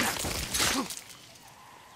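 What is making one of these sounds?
A heavy weapon strikes a body with a loud wet thud.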